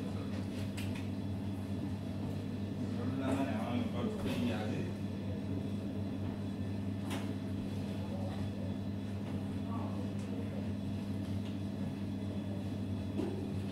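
Dough balls thud softly onto a metal counter.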